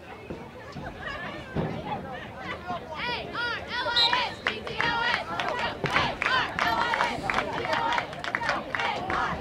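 Spectators cheer and shout from the sidelines outdoors.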